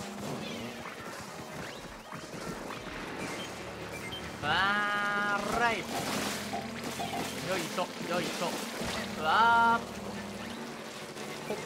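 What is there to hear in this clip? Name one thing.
Ink weapons splatter and spray in quick bursts.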